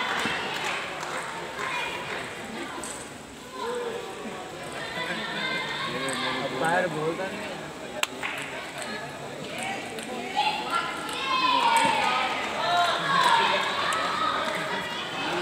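Young men and boys chatter nearby in an echoing hall.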